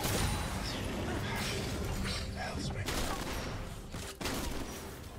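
Fantasy spell blasts and magic zaps crackle in quick succession.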